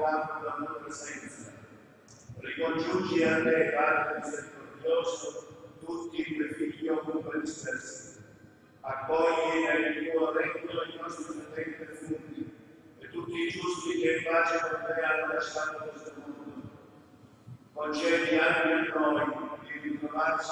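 A man speaks steadily through a microphone in a reverberant hall, in phrases with short pauses.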